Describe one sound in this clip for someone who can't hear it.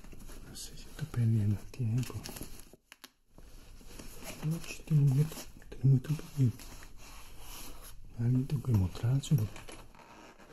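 A man speaks calmly close by, in short phrases.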